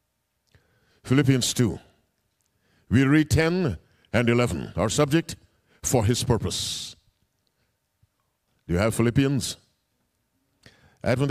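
A man preaches through a microphone in forceful bursts with pauses between phrases.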